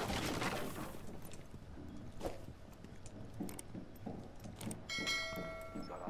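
Footsteps thud on stone stairs.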